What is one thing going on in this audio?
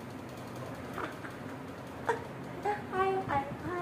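A young woman talks playfully to a baby close by.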